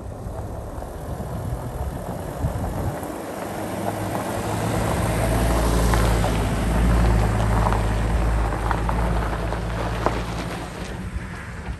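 A van drives past close by with a rumbling engine and tyres crunching on gravel.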